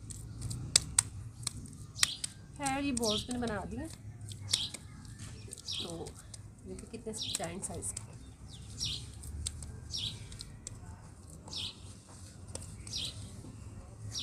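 Hands squeeze and pat damp sand, which crumbles and rustles softly.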